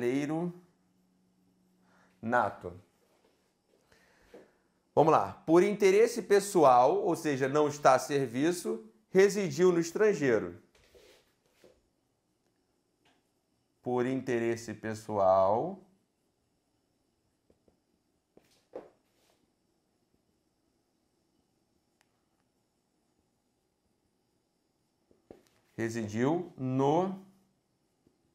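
A man speaks calmly and with emphasis, close to a microphone, in short bursts.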